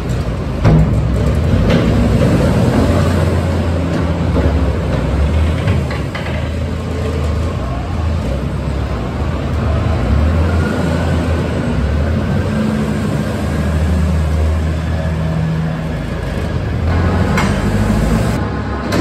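A diesel engine rumbles and revs unevenly close by.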